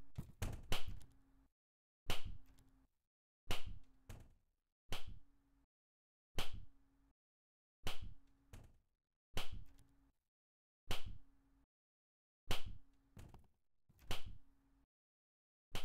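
Footsteps thud on a hard floor at a steady, unhurried pace.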